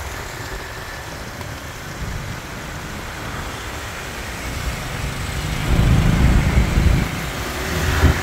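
A large truck's engine rumbles nearby.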